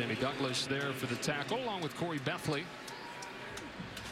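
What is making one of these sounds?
A large crowd roars in a stadium.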